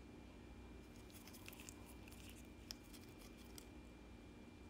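A plastic tool softly scrapes and taps on a sticker sheet.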